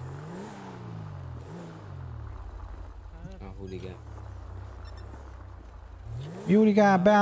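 A car engine revs and idles.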